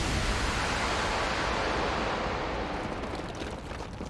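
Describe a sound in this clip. A loud blast roars and slowly fades.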